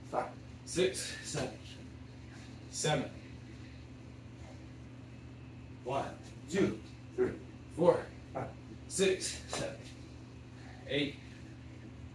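Feet and hands thud on a hard floor during quick exercise.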